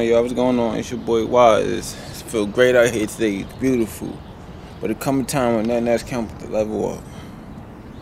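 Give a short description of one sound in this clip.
A young man talks casually and close up.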